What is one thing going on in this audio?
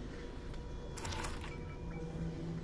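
A pistol slide clicks into place.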